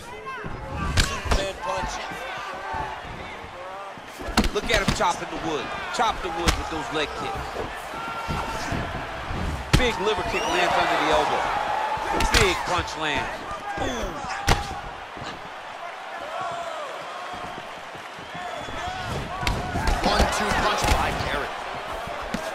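Punches and kicks land on bodies with sharp, heavy thuds.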